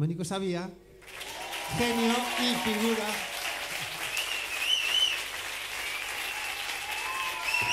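A crowd of people talks and murmurs.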